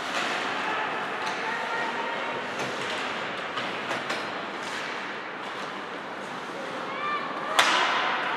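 Skate blades scrape across the ice in a large echoing rink.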